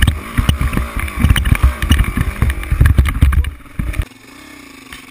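A dirt bike bumps and rattles over rough ground.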